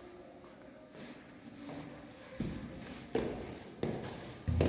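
Footsteps tap on stone stairs in an echoing stairwell.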